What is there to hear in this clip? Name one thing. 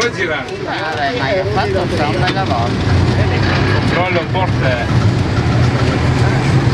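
A tram's motor hums and drones as it runs.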